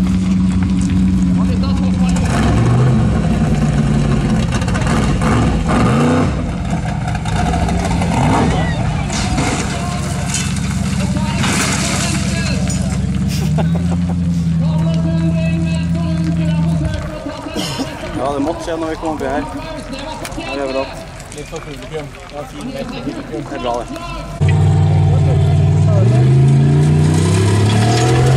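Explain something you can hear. An off-road buggy's engine roars and revs loudly.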